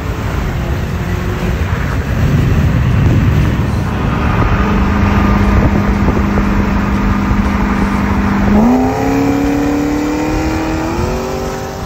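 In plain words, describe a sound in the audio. Tyres and wind roar steadily on a fast road.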